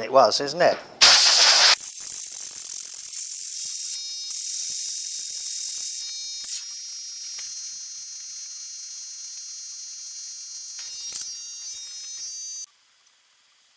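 A pneumatic tool hisses and whines.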